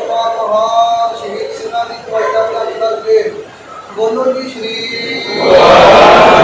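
A man chants a prayer in a steady, sung voice.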